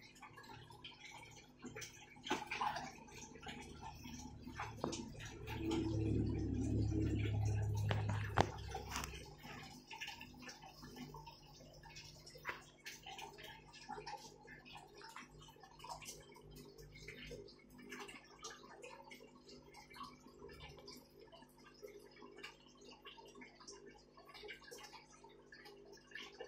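A pump hums low and steady.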